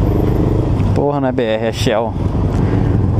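A motorcycle engine revs briefly up and down.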